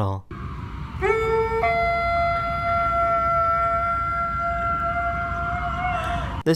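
A large dog howls in a long, steady wail outdoors.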